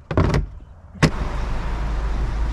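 A glass door clicks open.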